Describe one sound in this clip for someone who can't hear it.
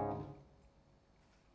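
An electric guitar chord rings out and fades.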